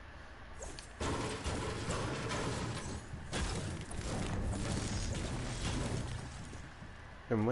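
A pickaxe strikes wood with repeated thuds.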